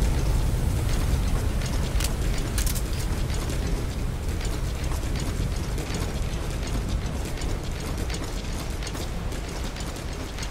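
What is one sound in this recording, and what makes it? Boots thud quickly on hard steps as a person runs.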